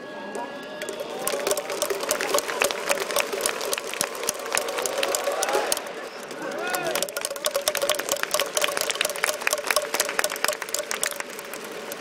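Fans clap in a fast, steady rhythm.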